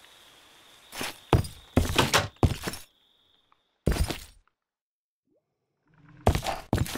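Glass shatters in short bursts.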